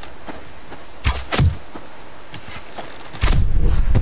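A bowstring creaks as a bow is drawn taut.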